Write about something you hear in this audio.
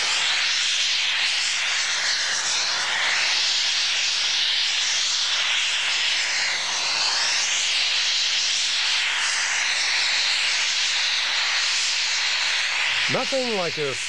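A steam traction engine chugs and hisses outdoors.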